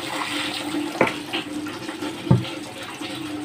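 A plastic bucket knocks and thuds.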